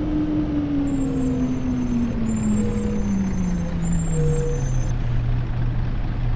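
A bus engine hums and slowly drops in pitch as the bus slows down.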